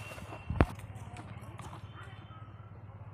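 Bare feet step softly on dry grass and dirt.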